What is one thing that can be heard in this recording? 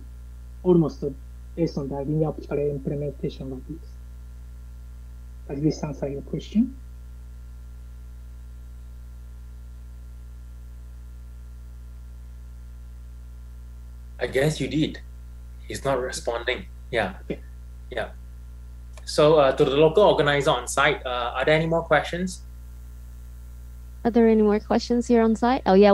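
A man speaks calmly over an online call, with pauses.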